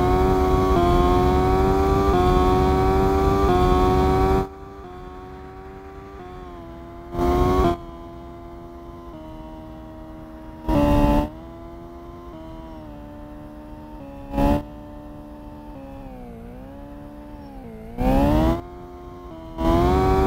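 A racing car engine hums steadily, rising and falling in pitch as the car speeds up and slows.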